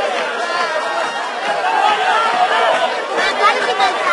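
A crowd of spectators chatters and calls out nearby.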